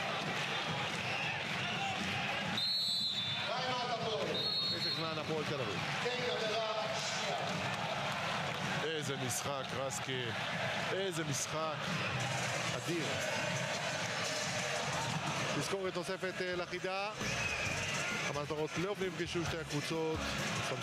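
A large crowd cheers and chants loudly in an echoing arena.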